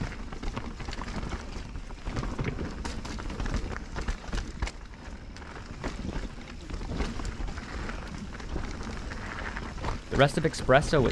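Bicycle tyres crunch and rattle over a bumpy dirt trail.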